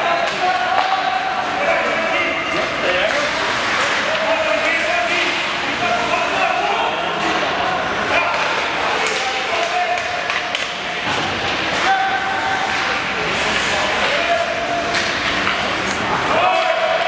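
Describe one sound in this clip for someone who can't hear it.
Skates scrape and carve across ice in a large echoing arena.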